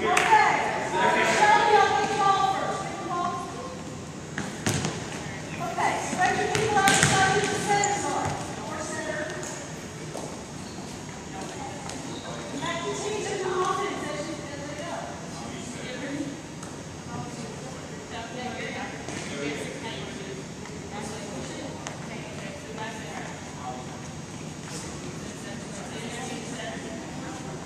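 Young people talk and call out in a large echoing hall.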